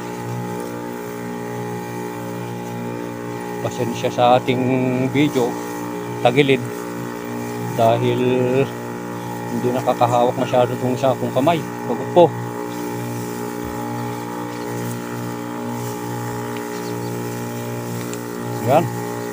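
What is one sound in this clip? A sprayer nozzle hisses steadily as it sprays a fine mist.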